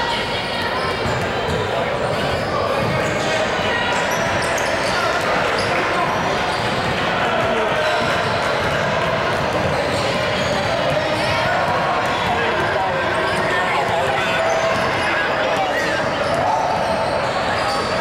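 Young women call out to each other in a large echoing gym.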